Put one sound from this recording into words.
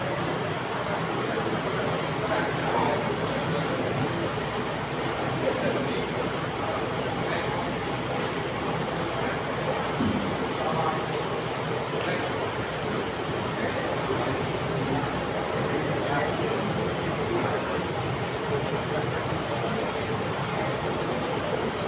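A large crowd of men murmurs and chatters in a big echoing hall.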